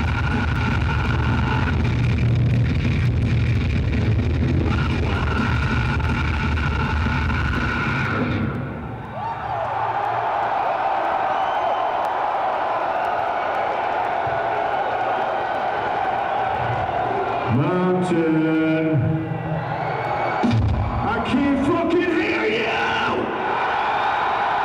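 A crowd cheers and roars in a large echoing hall.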